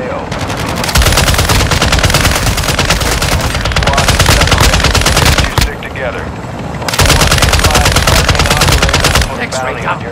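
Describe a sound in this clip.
A rifle fires rapid bursts of loud shots.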